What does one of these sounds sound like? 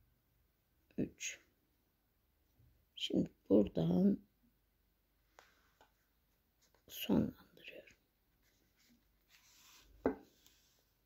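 Thread rustles softly as it is pulled through crocheted yarn.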